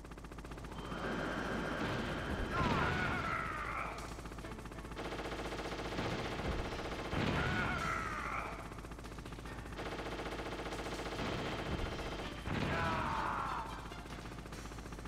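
Loud explosions boom several times.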